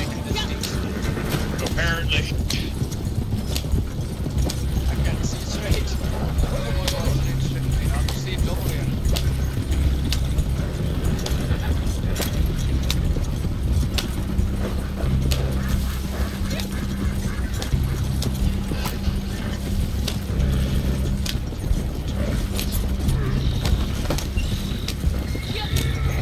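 A horse-drawn wagon rumbles and creaks along a dirt track.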